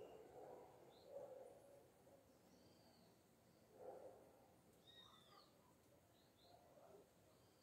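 A double-collared seedeater sings in short whistled chirps.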